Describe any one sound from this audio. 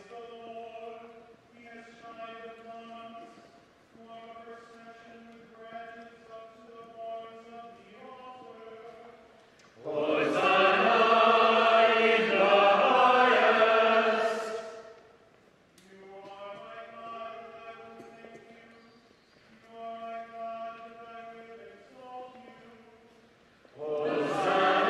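A solo singer chants in a large echoing church.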